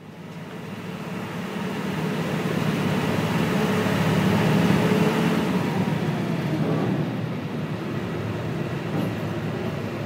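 A man talks nearby over the engines.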